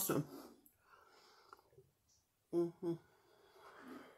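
A woman gulps a drink from a bottle.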